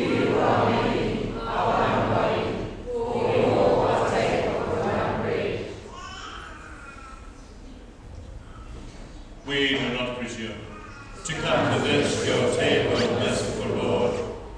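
A man recites a prayer aloud through a microphone in a large echoing hall.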